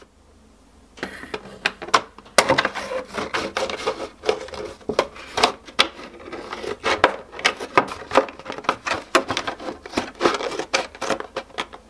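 Scissors snip and crunch through stiff plastic in quick repeated cuts.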